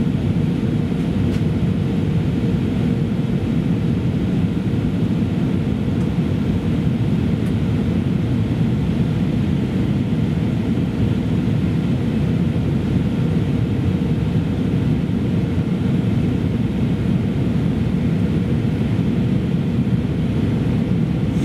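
A plane's jet engines roar steadily, heard from inside the cabin.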